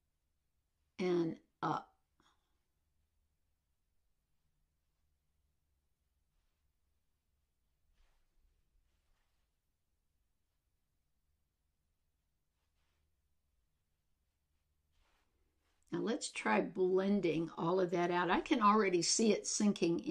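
A middle-aged woman speaks calmly, close to a microphone.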